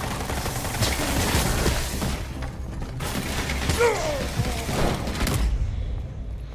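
A chainsaw roars and revs.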